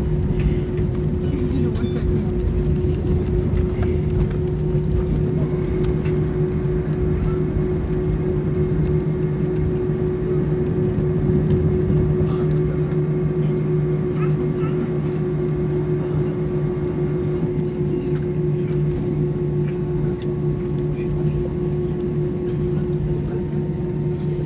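An airliner rumbles and rattles as it rolls along a runway.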